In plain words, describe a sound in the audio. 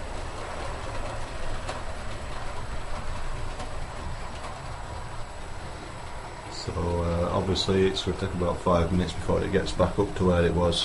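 A small model train hums and rattles softly along its track.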